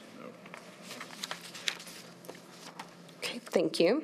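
Paper rustles in someone's hands.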